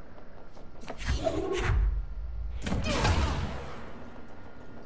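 Bullets strike and explode against metal with a loud burst.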